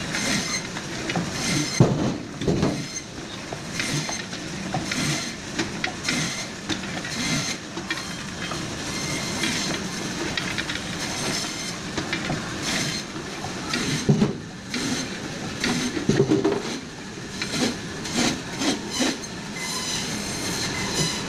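Frozen fish slices thud and clatter onto a metal table.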